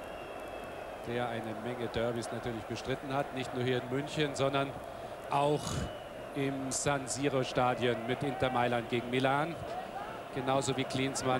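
A stadium crowd chants and sings in unison.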